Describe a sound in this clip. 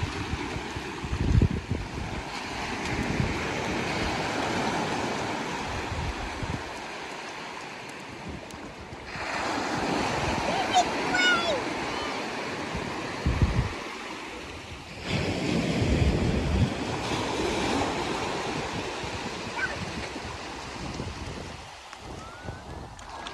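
Small waves wash and break steadily on a beach.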